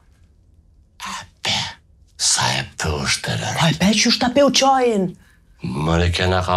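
A woman speaks with animation close by, her voice rising and falling expressively.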